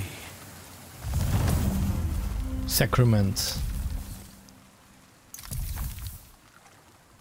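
A man talks close into a microphone.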